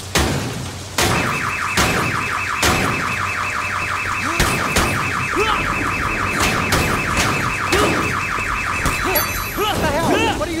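A car alarm blares in a fast pulsing beep.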